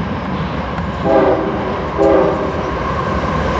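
A train horn sounds two short blasts.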